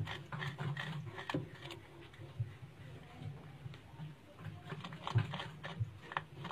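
A small animal scratches and rustles close by.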